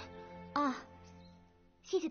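A young woman speaks softly and sweetly nearby.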